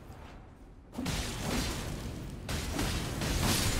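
A sword slashes and strikes flesh.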